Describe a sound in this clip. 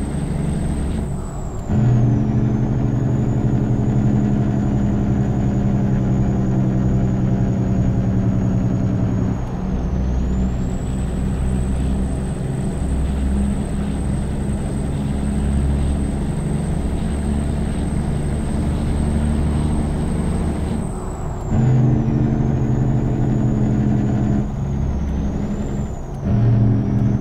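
A six-cylinder diesel semi truck engine drones while cruising under load.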